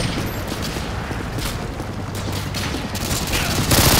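A gun clicks and rattles as it is swapped for a pistol.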